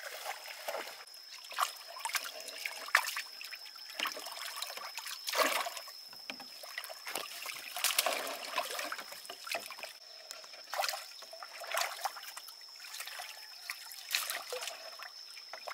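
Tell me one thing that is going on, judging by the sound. Water splashes as fish are scooped with a net.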